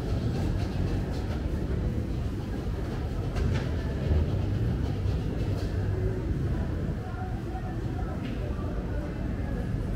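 A crowd of diners chatters in a large echoing hall.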